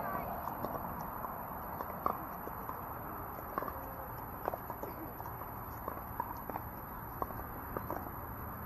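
Paddles pop against balls on nearby courts, sharp and frequent.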